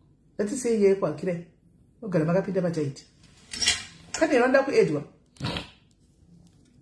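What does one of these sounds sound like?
A middle-aged woman speaks calmly and close up.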